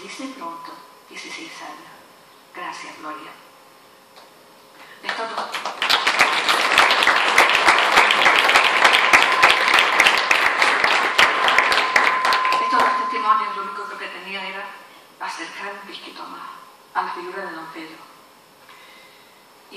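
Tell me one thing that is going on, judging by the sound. A middle-aged woman speaks calmly into a microphone, heard through loudspeakers in an echoing hall.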